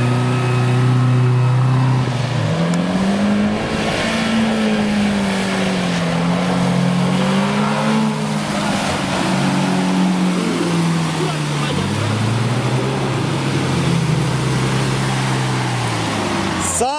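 An engine revs hard, rising and falling in pitch.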